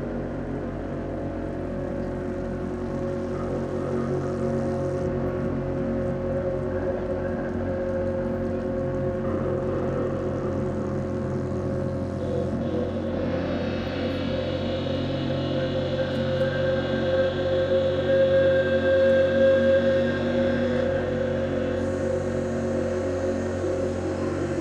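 Music plays through loudspeakers outdoors, swelling louder toward the end.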